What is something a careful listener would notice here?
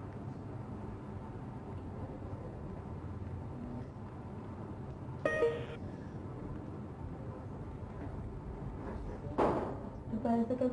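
A woman sobs and cries quietly nearby.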